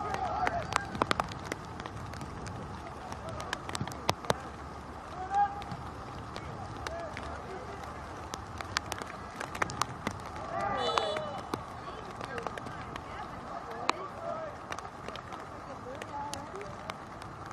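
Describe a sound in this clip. Young men shout now and then from across an open outdoor field.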